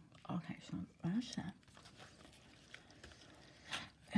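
Paper rustles and slides across a surface.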